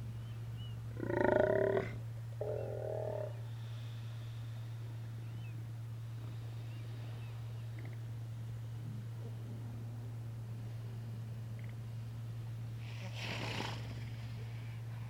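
Sea lions grunt and bellow nearby.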